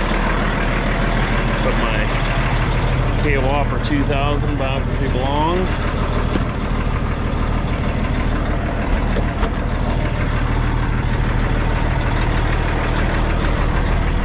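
A man talks up close outdoors.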